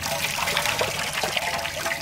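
Grains rustle as they are tipped from a bucket.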